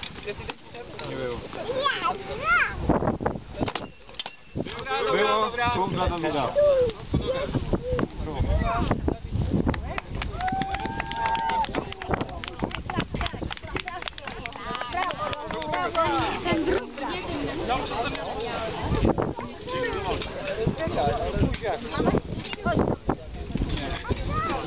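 Wooden shields and weapons knock together in a mock fight.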